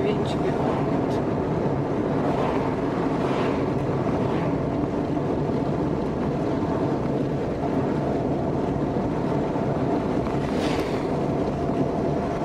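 A car's engine hums steadily.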